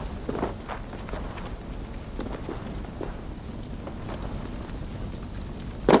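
Hands and feet scrape on wooden stakes while climbing.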